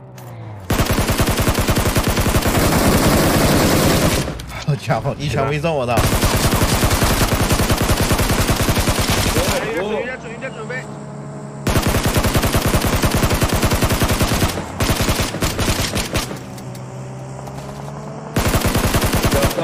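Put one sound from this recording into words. Rapid automatic gunfire rattles in long bursts.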